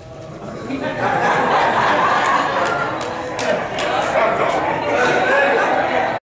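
An elderly man preaches with animation through a microphone in a reverberant hall.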